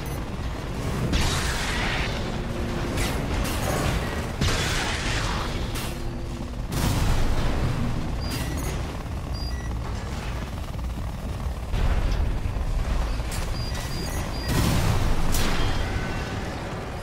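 Thrusters roar and whoosh as a giant robot boosts through the air.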